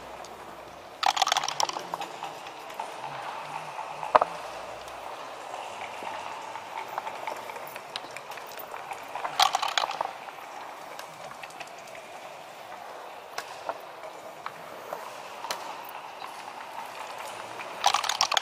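Dice rattle and tumble across a board.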